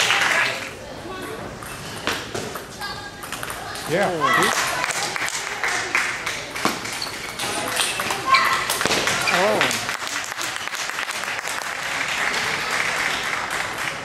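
Spectators clap and cheer in a large echoing hall.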